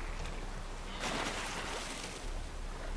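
A body splashes into the water.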